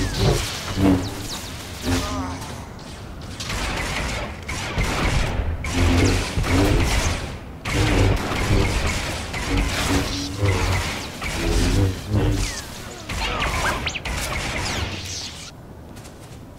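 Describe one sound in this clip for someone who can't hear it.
Lightsabers hum and clash with sharp buzzing strikes.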